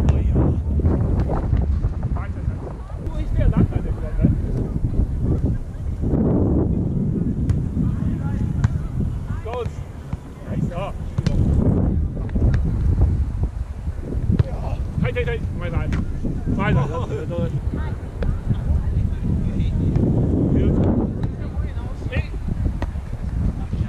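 Players' hands thump a ball again and again.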